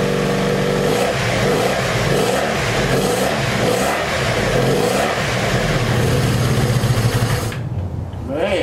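A motorcycle engine sputters and runs unevenly before cutting out.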